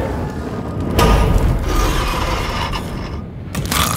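A gas flame roars loudly under a pan.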